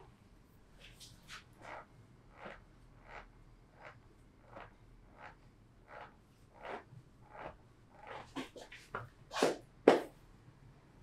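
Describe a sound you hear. Hands rhythmically pat and press on a person's body.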